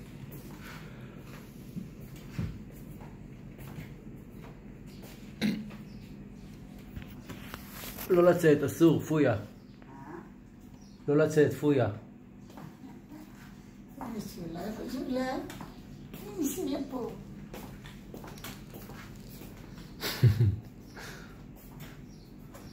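A walking cane taps on a tiled floor.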